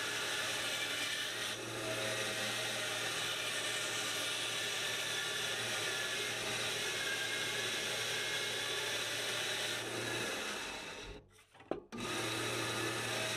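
A band saw runs with a steady whirring hum.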